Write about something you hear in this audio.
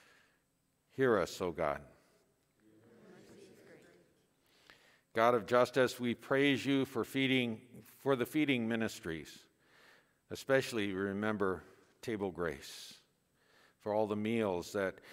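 An elderly man chants in a steady singing voice through a microphone, in an echoing hall.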